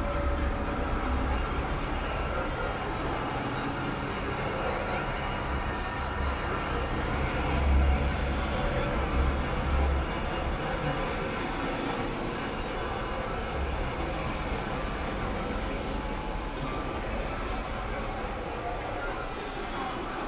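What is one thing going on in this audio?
An electronic keyboard plays a dense, droning tune.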